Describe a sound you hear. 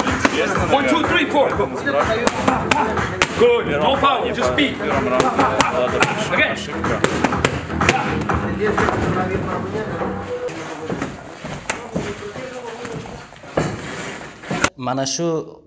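Boxing gloves smack against punch mitts in quick bursts.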